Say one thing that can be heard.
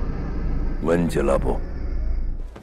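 A man speaks slowly in a deep voice.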